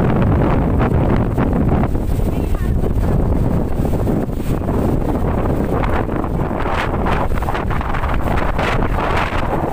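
Palm fronds and tree leaves rustle and thrash in the wind.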